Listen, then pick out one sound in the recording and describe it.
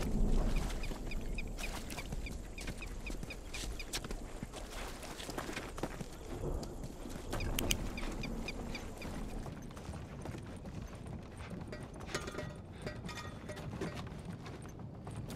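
Footsteps tread over rubble and creaky floorboards.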